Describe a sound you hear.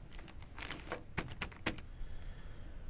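A plastic bag crinkles under a hand.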